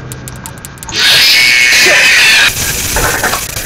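Loud static hisses and crackles.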